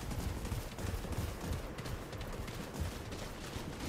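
Gunshots crack in the distance.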